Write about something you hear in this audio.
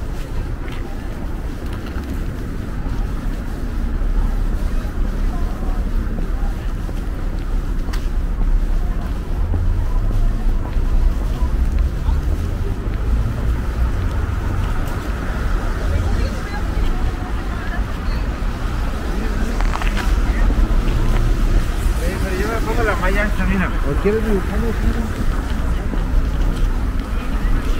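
City traffic rumbles steadily along a nearby street.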